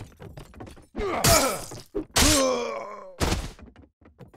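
A sword strikes a man with a heavy blow.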